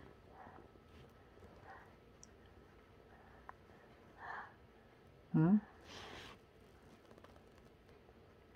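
A toddler makes soft sucking sounds with fingers in the mouth.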